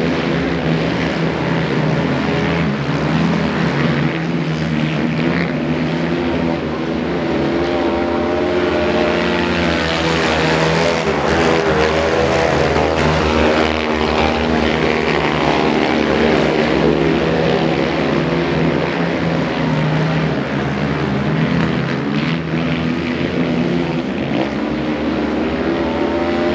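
Quad bike engines roar and rev loudly outdoors, rising and falling in pitch as they race past.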